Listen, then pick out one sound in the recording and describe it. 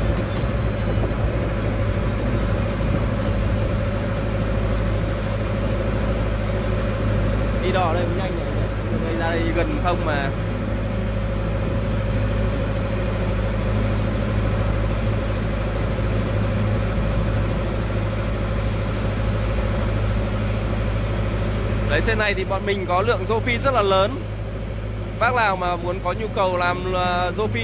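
A boat engine hums steadily throughout.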